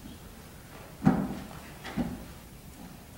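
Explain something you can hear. Something knocks sharply on a wooden lectern a few times.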